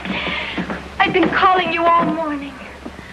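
A man speaks urgently.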